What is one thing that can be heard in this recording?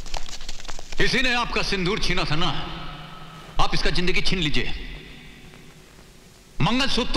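A man speaks forcefully, close by.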